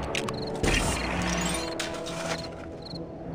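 Plastic bricks clatter and crumble as a small structure breaks apart.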